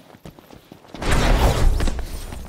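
A loud magical whoosh bursts out.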